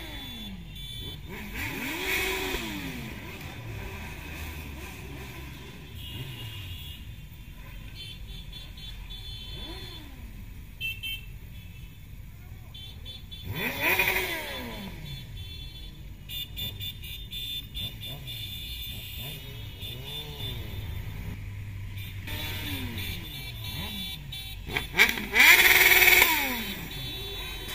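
Motorcycle engines rumble and rev nearby.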